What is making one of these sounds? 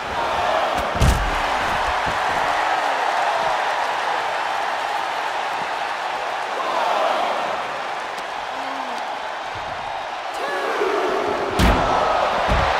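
Heavy bodies slam down with hard thuds.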